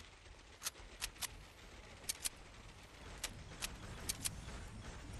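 Building pieces snap into place with short, sharp clicks, one after another.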